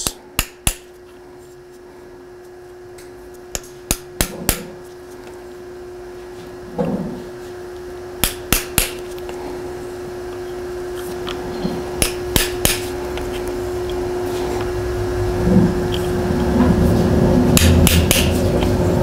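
A metal tool clicks sharply against a bicycle fork part.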